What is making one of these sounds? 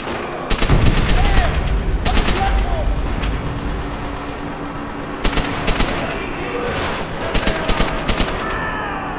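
A submachine gun fires in short rapid bursts.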